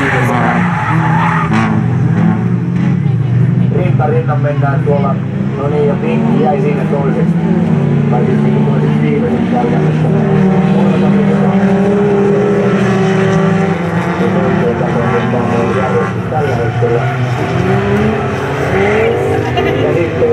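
Racing car engines roar and rev, rising and falling in pitch.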